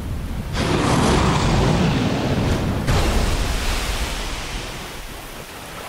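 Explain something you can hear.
Water splashes and roars loudly as a huge creature crashes into it, then slowly fades.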